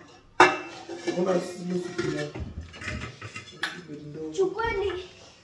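Metal pots clang and scrape against each other.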